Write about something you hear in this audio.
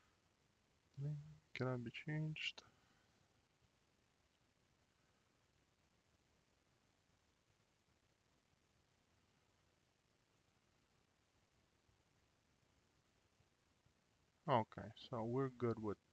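A man speaks calmly into a close microphone, with long pauses.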